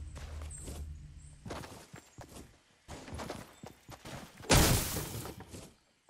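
Footsteps run over grass and pavement.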